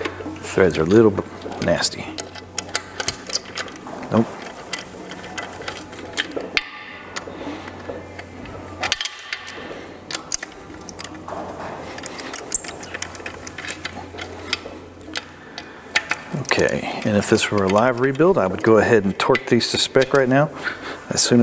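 Metal parts clink and tap against each other.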